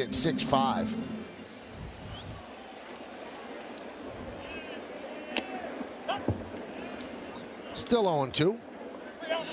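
Fans in a crowd whistle and shout.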